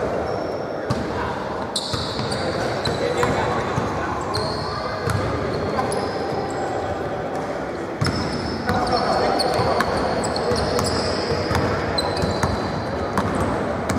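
Voices echo through a large hall.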